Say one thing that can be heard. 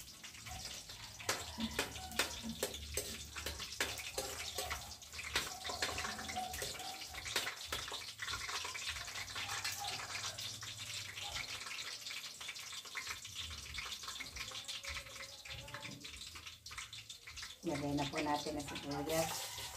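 A metal ladle scrapes and clinks in a wok.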